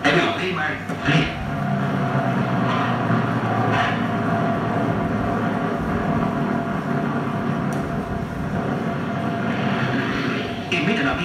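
Propeller aircraft engines roar loudly.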